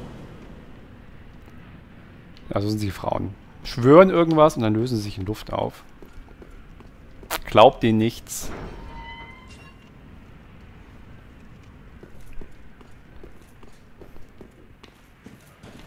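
Footsteps clump on a stone floor.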